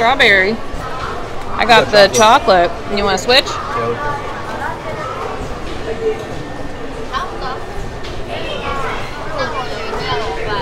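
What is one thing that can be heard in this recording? A crowd chatters in a busy, echoing hall.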